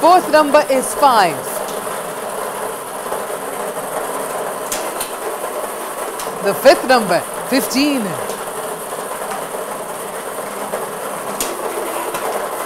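Balls rattle and tumble inside a lottery drum with a steady rush of air.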